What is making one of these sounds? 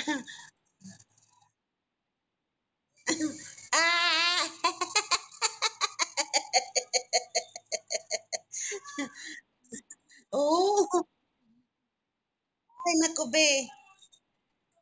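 A woman laughs and talks with animation over an online call.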